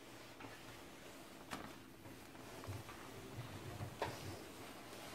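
A chair creaks and thumps as someone sits down.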